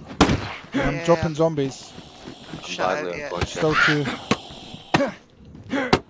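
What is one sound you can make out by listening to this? An axe thuds hard into a body.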